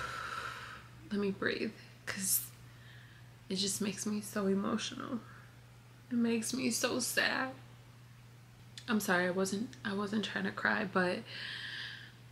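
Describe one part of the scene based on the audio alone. A young woman speaks emotionally close by, her voice muffled and breaking.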